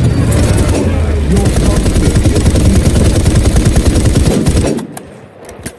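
A gun fires rapid bursts at close range.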